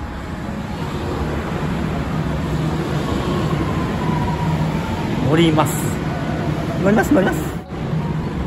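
A train rolls in with a rising hum and squeal.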